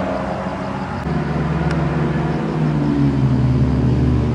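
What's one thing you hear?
A small sports car's engine growls as it approaches.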